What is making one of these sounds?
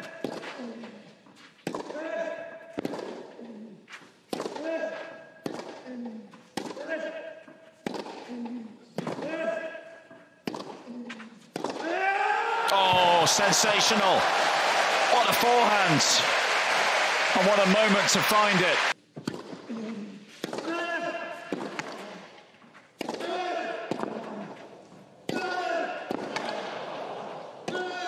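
A young man grunts loudly as he hits the ball.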